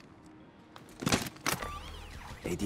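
A metal device clicks as it is pressed onto a wall.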